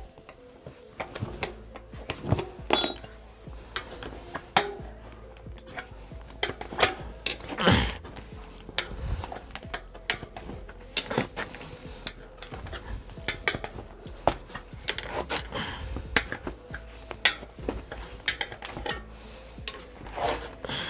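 A tyre lever clicks and scrapes against a bicycle wheel rim.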